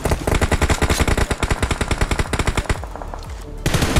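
Gunshots crack in rapid bursts.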